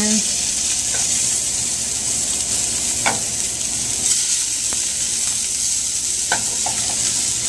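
Fish fillets sizzle steadily in hot oil in a pan.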